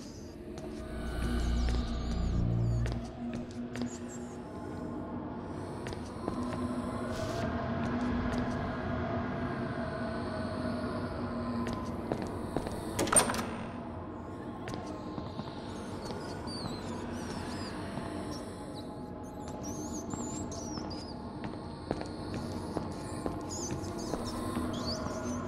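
Footsteps tap slowly on a hard floor.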